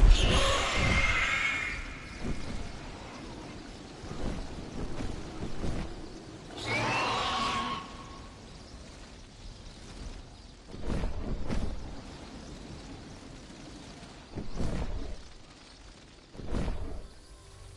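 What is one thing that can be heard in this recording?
Wind rushes loudly past during a gliding descent.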